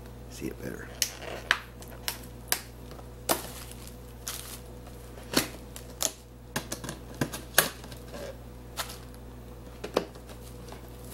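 A glass tumbler clinks and knocks against a table.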